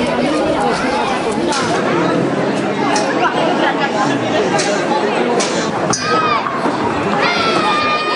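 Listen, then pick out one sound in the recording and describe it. A crowd of spectators shouts and chatters loudly all around.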